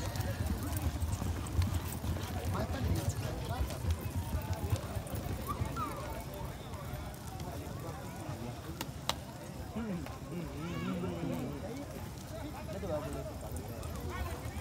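A crowd of men and women calls out and chatters outdoors.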